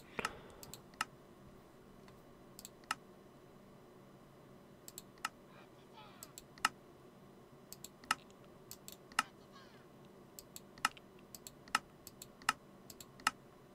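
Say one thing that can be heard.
Soft clicks sound as a game's item pages are flipped.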